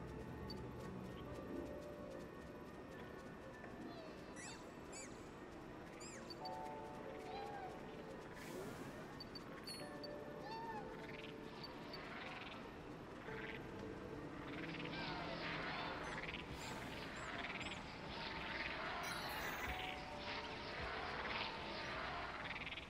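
Bats squeak and chirp in an echoing cave.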